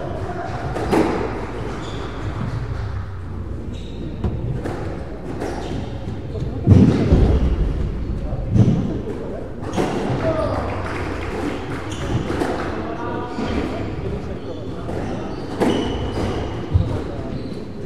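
A squash ball smacks off the walls with sharp echoing cracks.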